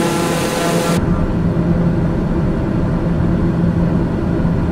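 A propeller plane's engine hums muffled from inside the cockpit.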